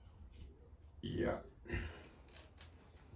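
A young man speaks briefly nearby.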